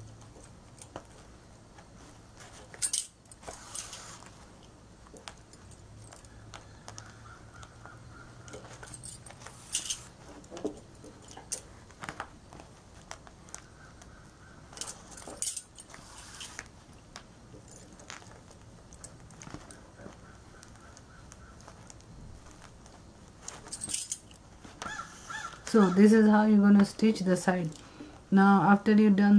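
Fabric rustles under handling.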